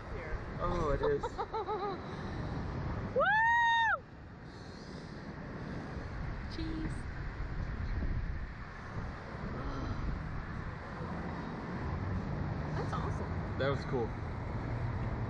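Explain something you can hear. A man laughs up close.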